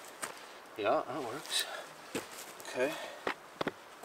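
Footsteps crunch on dry pine needles.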